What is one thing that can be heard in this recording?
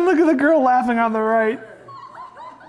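A young boy and girl shriek with excitement.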